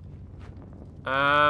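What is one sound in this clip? A young man speaks up suddenly into a close microphone.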